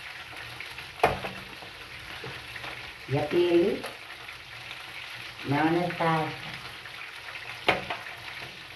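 A utensil clinks against a pan.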